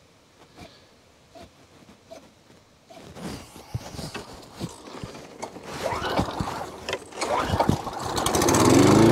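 A man yanks the pull cord of a lawnmower.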